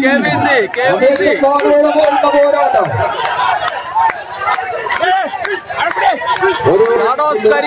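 A large crowd shouts and cheers loudly.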